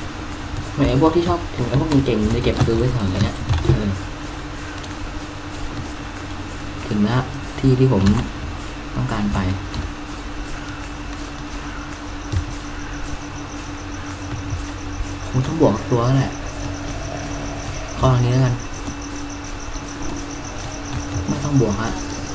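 Footsteps rustle quickly through tall grass.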